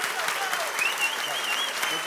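A young man claps his hands.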